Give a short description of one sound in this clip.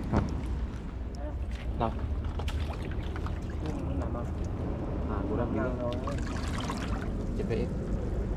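Sandals scuff and click on wet rocks.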